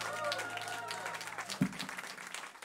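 An acoustic guitar rings out a closing chord.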